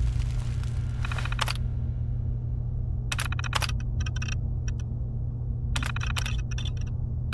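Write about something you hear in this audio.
An old computer terminal hums steadily.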